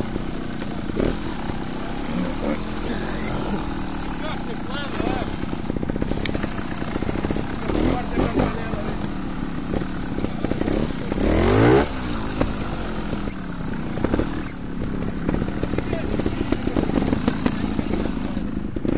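A trials motorcycle engine idles and revs up and down close by.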